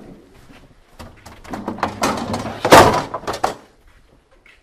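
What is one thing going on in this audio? A chair rattles and knocks as it is moved.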